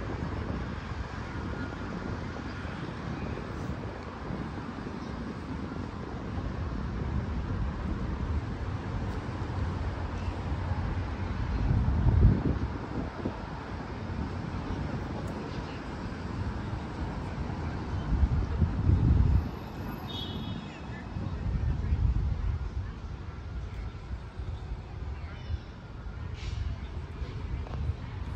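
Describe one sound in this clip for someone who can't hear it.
Wind blows and rumbles outdoors in gusts.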